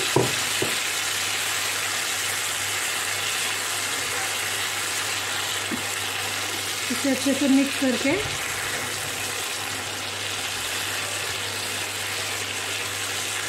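A spatula scrapes and knocks against a pan.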